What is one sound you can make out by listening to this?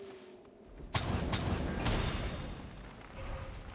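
A big fiery explosion booms and roars.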